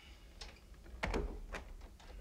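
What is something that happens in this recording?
A door latch clicks shut.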